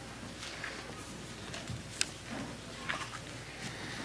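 Paper rustles as pages are handled.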